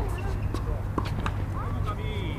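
A tennis racket strikes a ball on an outdoor hard court.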